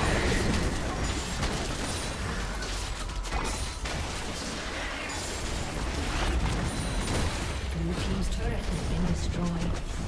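Game combat effects of blasts and strikes crackle in quick bursts.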